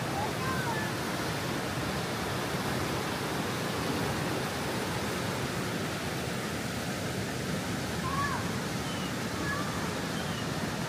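A fast mountain river rushes loudly and steadily over rocks nearby.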